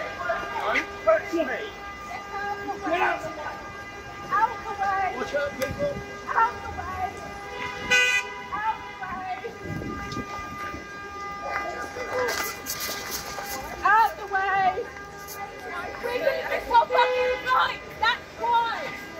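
A woman shouts angrily close by.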